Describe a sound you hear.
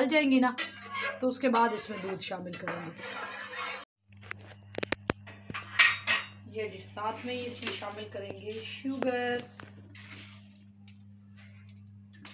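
A spoon stirs and scrapes inside a metal pot.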